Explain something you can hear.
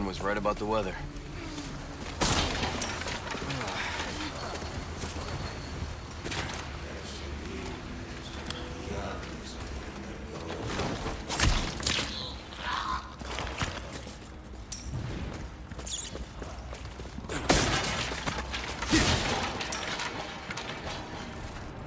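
Footsteps crunch on a dirt floor.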